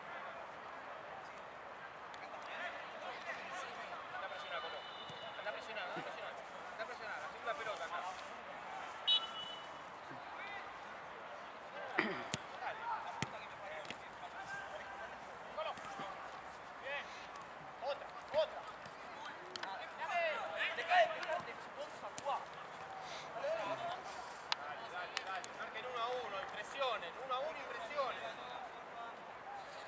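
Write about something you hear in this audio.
Young men shout and call out across an open pitch.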